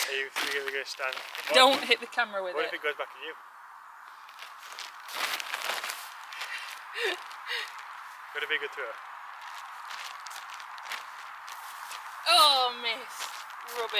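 A spade digs into soil.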